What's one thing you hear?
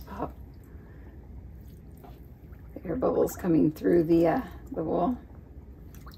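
Water sloshes softly as hands swirl it in a tub.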